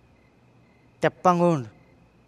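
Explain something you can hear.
A man calls out loudly, close by.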